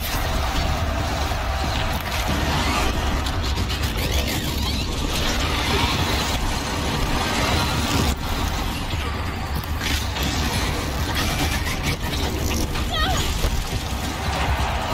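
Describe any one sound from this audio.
A huge mechanical beast stomps heavily.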